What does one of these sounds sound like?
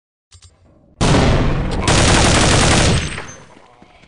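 A rifle fires a rapid burst of loud shots.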